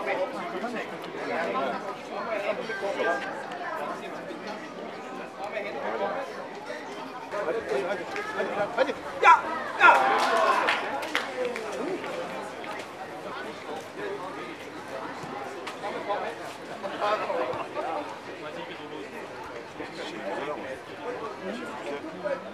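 Young men and boys talk and call out nearby outdoors.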